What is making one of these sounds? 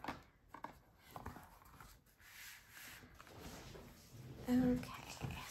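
Stiff paper rustles and flaps as pages are unfolded by hand.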